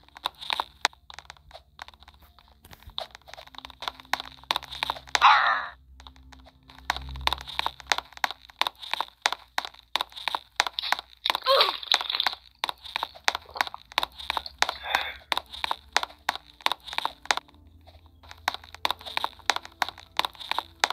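Footsteps tap quickly and steadily on wooden floorboards.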